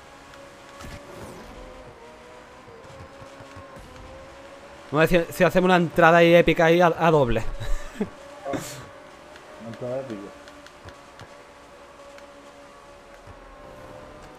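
A car engine hums steadily at high speed.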